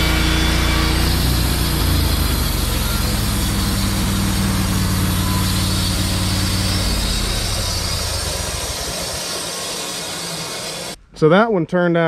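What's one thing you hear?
A sawmill engine runs loudly and steadily, then fades.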